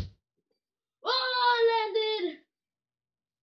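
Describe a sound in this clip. A young boy shouts in a drawn-out, sing-song voice close by.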